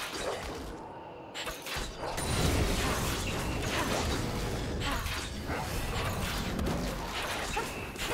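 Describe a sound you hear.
Video game spell effects whoosh and crackle in a fight.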